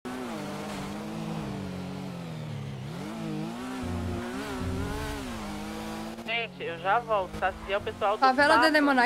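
A motorcycle engine hums and revs steadily.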